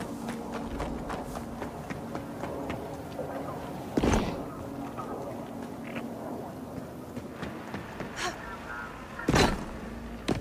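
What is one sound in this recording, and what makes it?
Footsteps scuff quickly over rocky ground.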